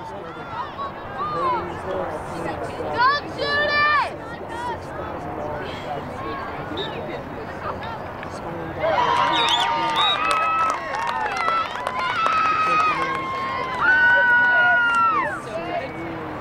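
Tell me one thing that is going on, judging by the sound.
Young women shout and cheer across an open field.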